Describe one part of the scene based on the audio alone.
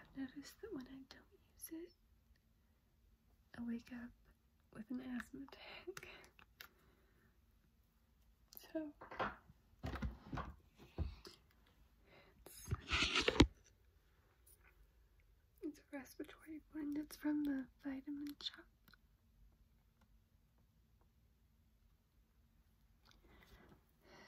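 A young woman talks softly and close up, with pauses.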